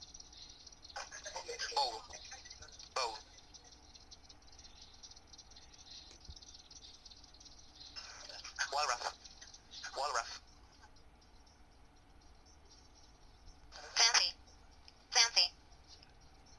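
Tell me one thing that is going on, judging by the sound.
Short bursts of voices and music play through small laptop speakers.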